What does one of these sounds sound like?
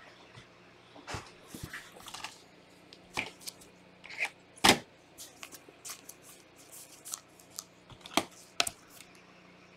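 Gloved hands handle and rustle trading cards in plastic sleeves, with sharp crinkles and clicks.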